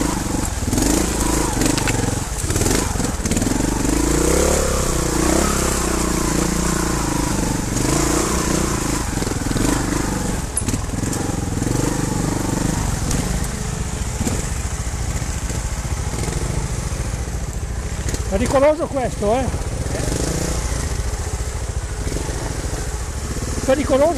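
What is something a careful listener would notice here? A dirt bike engine revs and labours close by.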